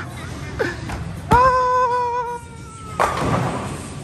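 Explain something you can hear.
A bowling ball rumbles down a lane.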